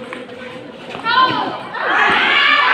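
Young people cheer and shout loudly.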